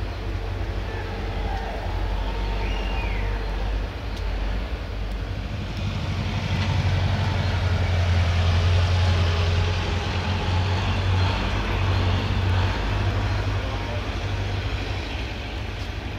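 A steam locomotive rumbles and clatters steadily as it rolls along.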